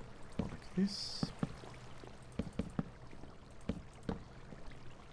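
Wooden blocks are placed with soft, quick knocks.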